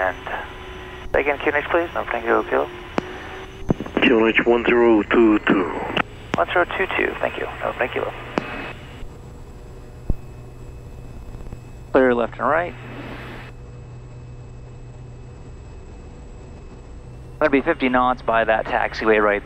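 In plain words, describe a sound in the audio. A man speaks briskly over a crackly aircraft radio.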